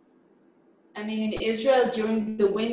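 A woman talks animatedly over an online call.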